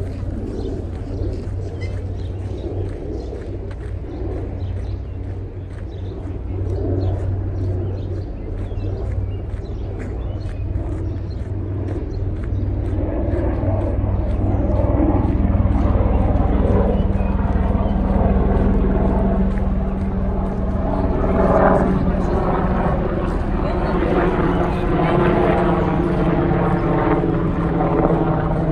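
Wind blows outdoors, rumbling against the microphone.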